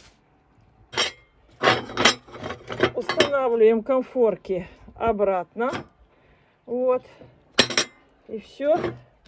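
A heavy metal lid clanks into place.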